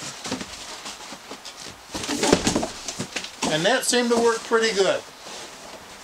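Cardboard flaps scrape and rustle as a box is pulled away.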